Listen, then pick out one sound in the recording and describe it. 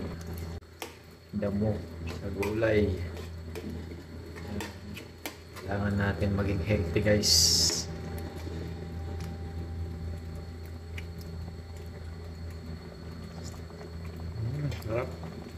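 A metal spoon stirs and scrapes food in a pan.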